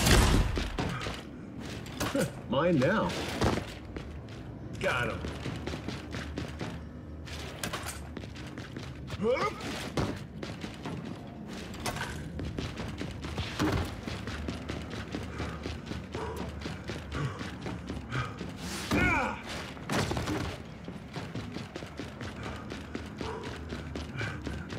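Heavy armoured footsteps thud on a hard floor.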